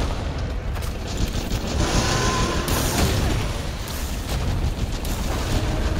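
A burst of fire blasts loudly.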